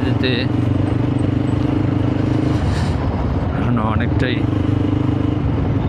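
A motorcycle engine rumbles steadily up close, dipping briefly in the middle.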